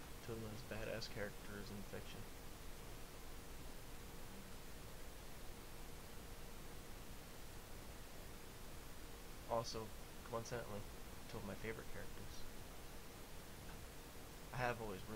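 A young man speaks close to a microphone in short bursts, with pauses between.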